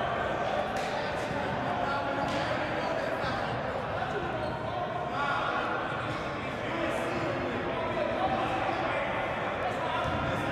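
A crowd murmurs and chatters in an echoing gym.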